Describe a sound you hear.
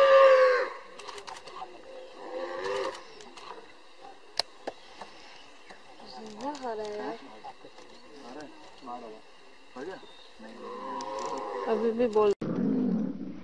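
A tiger growls.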